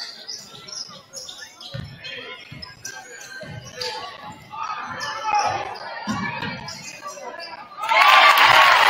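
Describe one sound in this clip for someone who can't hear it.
A basketball bounces with dull thumps on a hard court.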